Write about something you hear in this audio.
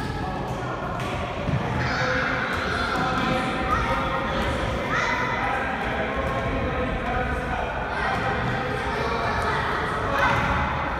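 Young children shout and call out in a large echoing hall.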